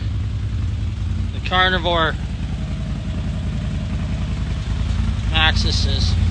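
A vehicle engine idles with a low, steady, pulsing rumble.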